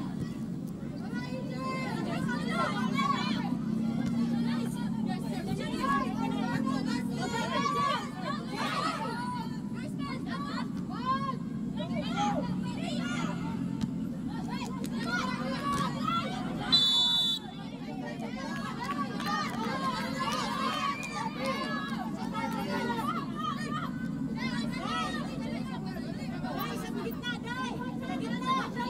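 Young women shout and call to each other on an open outdoor field.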